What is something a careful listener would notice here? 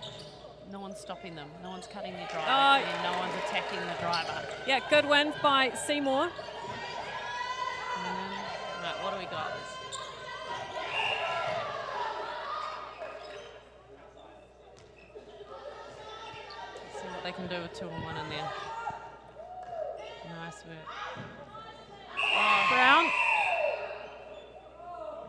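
A ball thumps as it bounces on the court.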